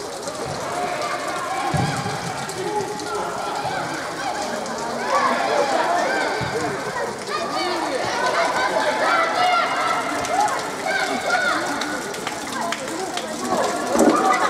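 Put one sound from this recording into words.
Young players shout and call to each other across an echoing indoor hall.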